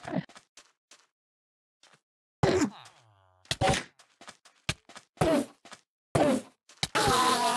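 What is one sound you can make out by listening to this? A sword strikes a creature with repeated dull thwacks.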